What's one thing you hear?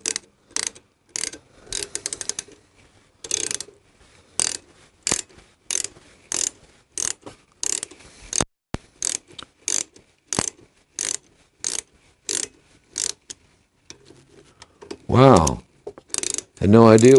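A ratchet wrench clicks in short, regular bursts.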